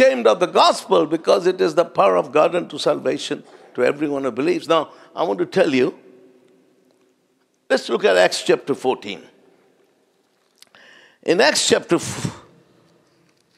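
An elderly man speaks with animation into a microphone, in a reverberant hall.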